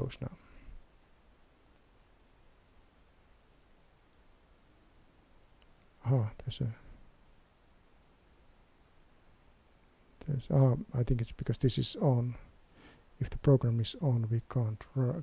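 A man talks calmly and close to a microphone, with pauses.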